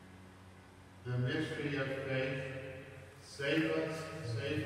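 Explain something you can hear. A man chants aloud in an echoing hall, heard through a microphone.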